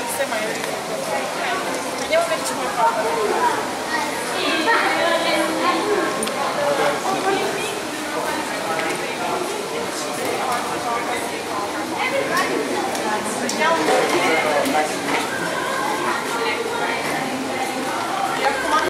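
A crowd of people chatters all around in an echoing hall.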